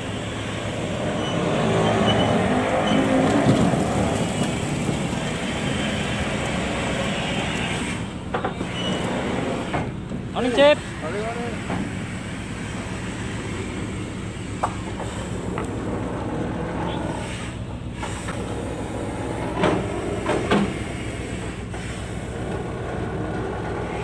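A steady engine hum drones throughout.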